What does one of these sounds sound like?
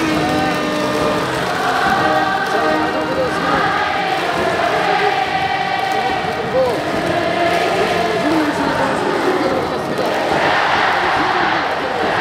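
A large stadium crowd cheers and chants loudly, echoing around the stands.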